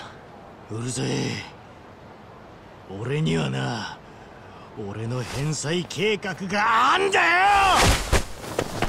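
A young man shouts angrily, close by.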